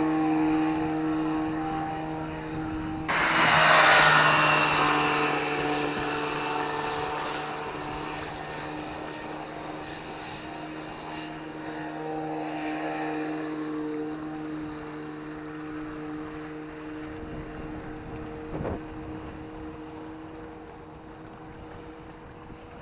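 A jet ski engine drones nearby and slowly fades into the distance.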